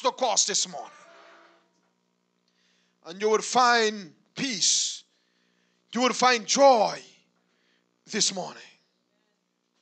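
A man preaches into a microphone in loud, emphatic bursts with pauses between them.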